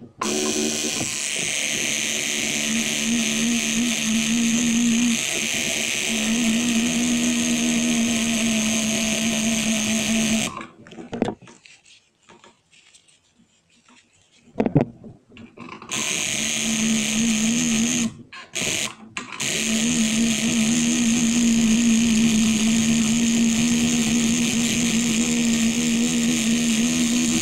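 A tattoo machine buzzes steadily, close by, with a short pause.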